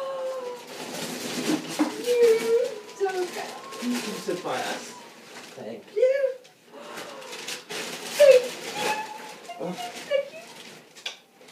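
A young woman talks and exclaims excitedly nearby.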